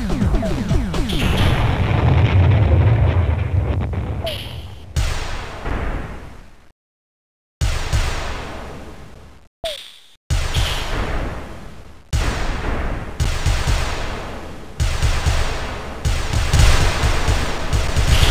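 Loud explosions boom again and again, each one fading away.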